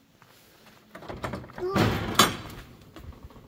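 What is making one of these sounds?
A metal door clicks and swings open.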